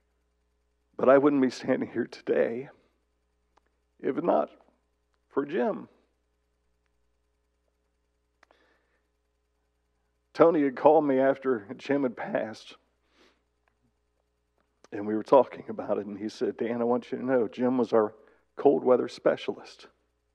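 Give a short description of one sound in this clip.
A middle-aged man speaks calmly into a microphone, with pauses, in a large hall.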